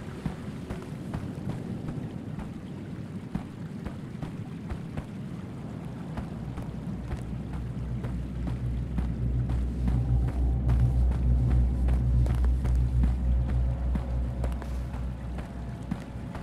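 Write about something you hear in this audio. Footsteps crunch through dry undergrowth at a steady walking pace.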